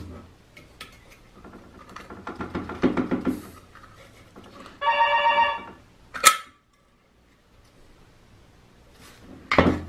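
A metal reflector scrapes and clinks as hands pull it from a lamp housing.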